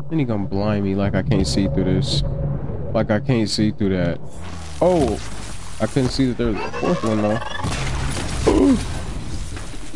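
A bow fires arrows with sharp twangs.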